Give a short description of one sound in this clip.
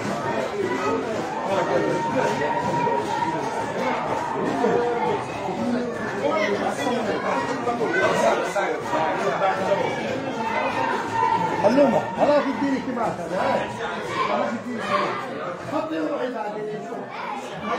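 Many men talk and chatter at once, close by.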